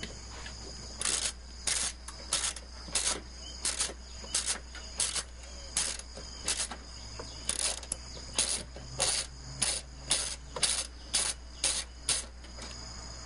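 A ratchet wrench clicks rapidly in short bursts.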